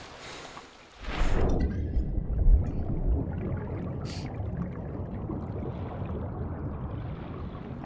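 Deep water rumbles and swirls steadily, as if heard underwater.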